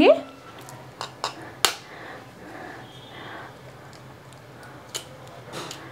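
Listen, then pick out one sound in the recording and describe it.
An egg is tapped and cracked against the rim of a bowl.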